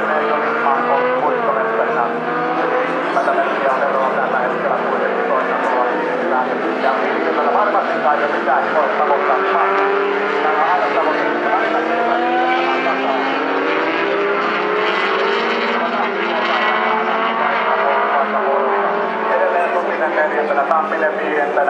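Racing car engines roar and rev as cars speed around a track.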